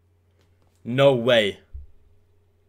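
A young man exclaims loudly into a close microphone.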